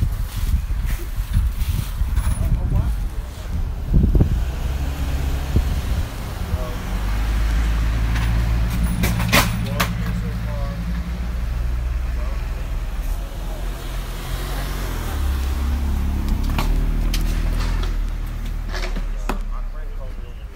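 A large engine idles nearby with a deep, steady rumble.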